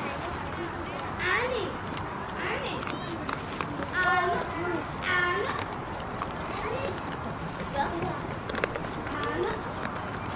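A man talks to goats.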